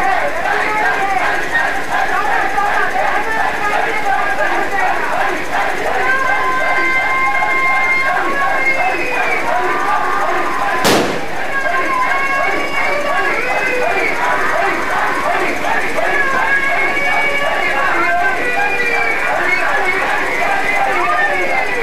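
A large crowd of young men chants and shouts loudly and excitedly.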